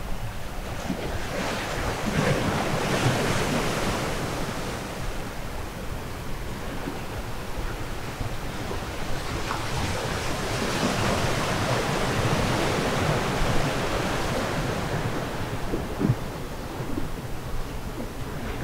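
Waves wash and break against rocks below.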